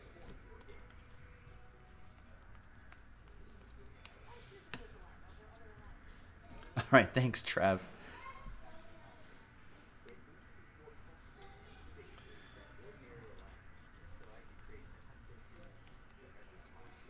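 Trading cards rustle and flick as they are shuffled by hand.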